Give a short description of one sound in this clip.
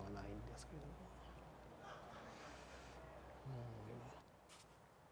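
A man speaks calmly and softly nearby.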